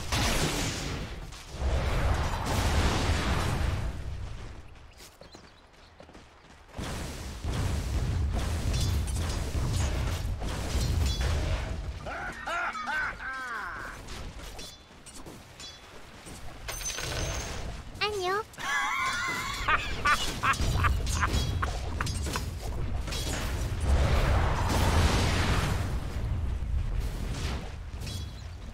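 Game combat effects clash and crackle with spells and hits.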